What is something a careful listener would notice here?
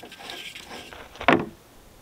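A glass jar knocks down onto a hard surface.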